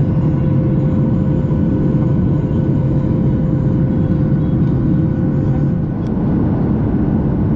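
Jet engines roar steadily from inside an airliner cabin.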